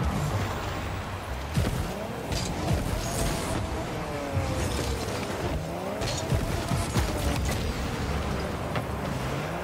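A rocket boost roars in loud bursts.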